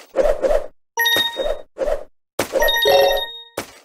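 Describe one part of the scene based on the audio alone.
Bright coin chimes ring out in a video game.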